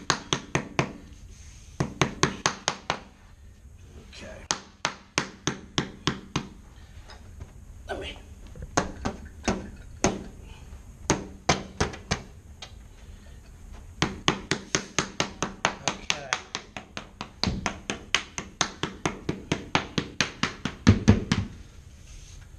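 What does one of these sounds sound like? A rubber mallet taps rapidly on a floor.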